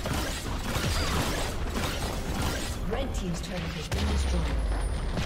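Video game battle sounds of clashing weapons and magic blasts ring out rapidly.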